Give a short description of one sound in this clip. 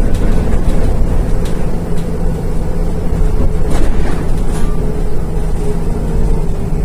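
A bus engine rumbles and drones steadily.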